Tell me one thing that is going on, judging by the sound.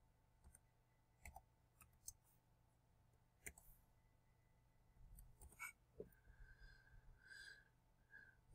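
Keyboard keys click softly as someone types.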